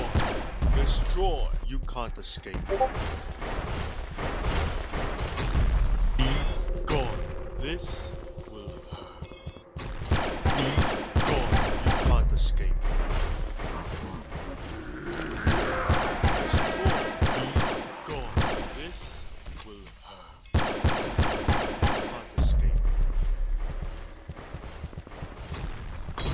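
Rapid video game gunfire rattles in quick bursts.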